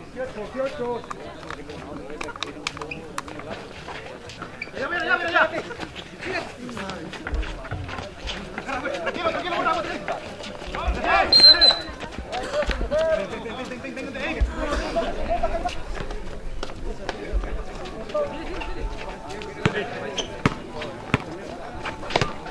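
A crowd of young men shout and call out outdoors.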